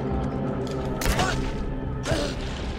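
A shotgun fires a loud blast indoors.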